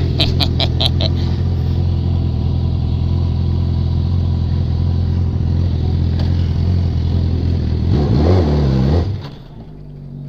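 A motorcycle engine runs loudly up close.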